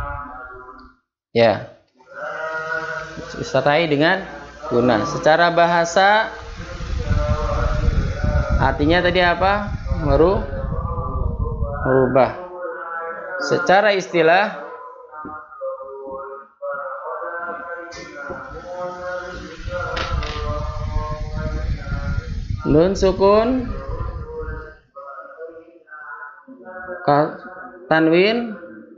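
A man speaks steadily and clearly into a microphone, explaining.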